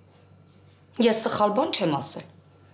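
A woman speaks animatedly close by.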